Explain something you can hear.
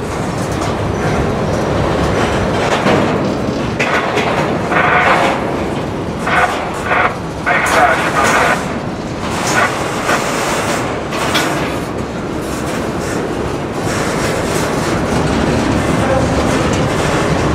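Train wheels clank and squeal on the rails.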